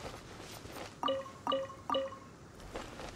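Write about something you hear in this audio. Short bright chimes ring in quick succession.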